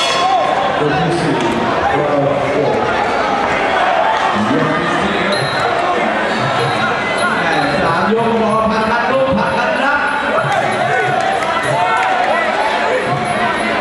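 A crowd murmurs and chatters in a large hall.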